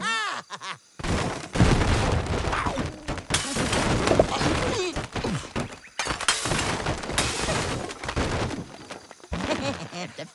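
Wooden blocks crash and clatter as they tumble down.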